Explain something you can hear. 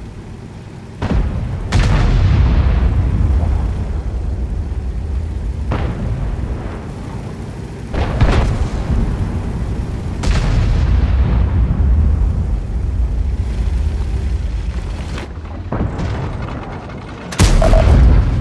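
Tank cannon shots boom sharply, with a ringing echo.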